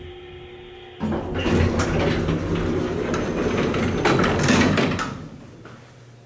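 Elevator doors rumble and rattle as they slide open.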